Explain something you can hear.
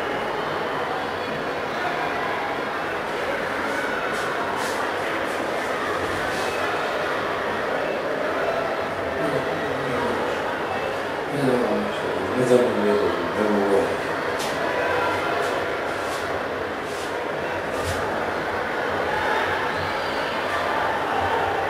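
Many voices murmur in a large echoing hall.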